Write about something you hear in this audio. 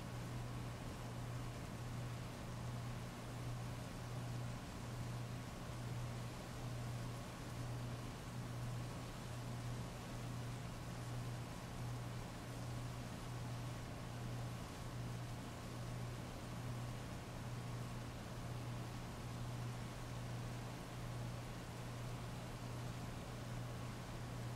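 Heavy rain pours steadily and splashes on wet pavement.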